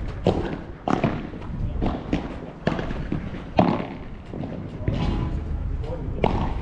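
Padel rackets strike a ball with sharp pops, back and forth.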